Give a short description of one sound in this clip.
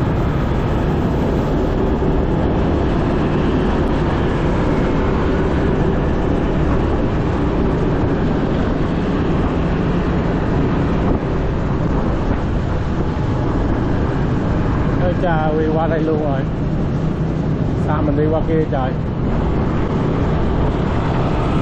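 Other motorbikes and cars drive by on a busy road.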